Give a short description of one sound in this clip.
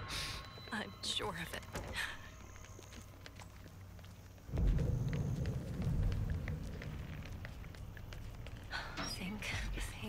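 Footsteps run over ground and wooden boards.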